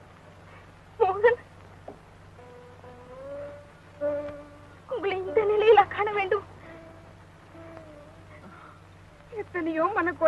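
A woman cries out and wails in distress.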